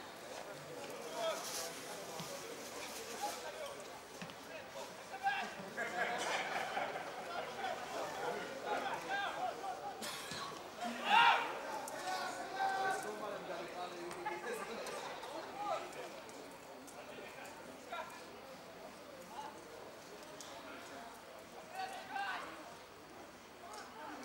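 Young men shout to each other across an open field, some way off.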